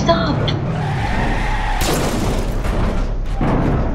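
A van crashes into a truck with a loud crunching impact.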